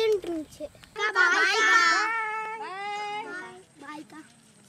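A group of children shout and cheer together.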